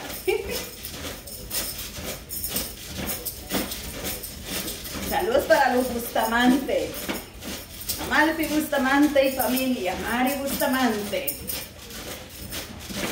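A trampoline creaks and thumps rhythmically under bouncing feet.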